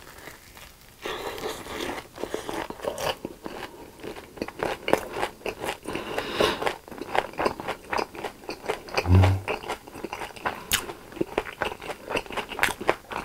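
A young man chews with wet, crunchy sounds close to a microphone.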